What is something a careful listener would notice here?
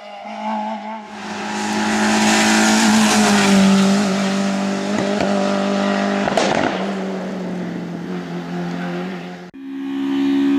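A second rally car races past at full throttle on tarmac and speeds away.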